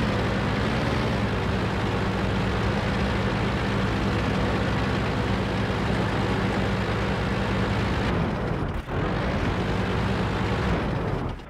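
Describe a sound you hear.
A tank engine rumbles steadily as the tank drives over rough ground.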